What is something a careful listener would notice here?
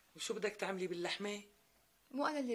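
A middle-aged woman speaks with animation nearby.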